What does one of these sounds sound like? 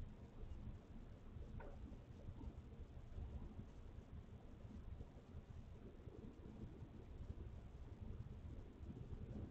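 A kitten purrs softly and steadily up close.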